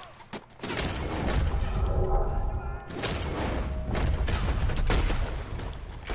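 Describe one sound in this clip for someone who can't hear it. A revolver fires loud shots.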